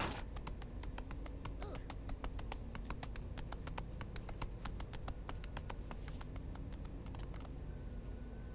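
Quick light footsteps patter across stone.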